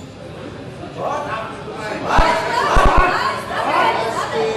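Men shout encouragement loudly.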